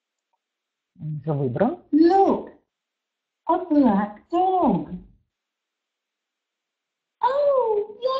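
A woman speaks slowly and clearly through a microphone, in short phrases with pauses.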